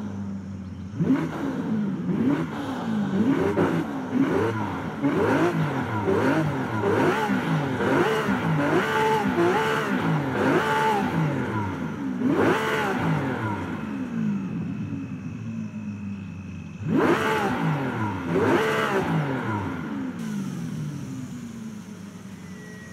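A sports car engine revs hard, rising and falling again and again.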